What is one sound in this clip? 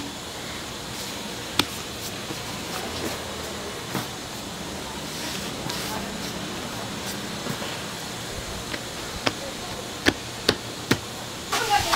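Hands knead and press soft dough with dull thumps.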